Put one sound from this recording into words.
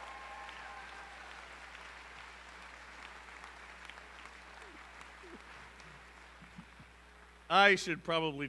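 An audience applauds in a large hall, fading out.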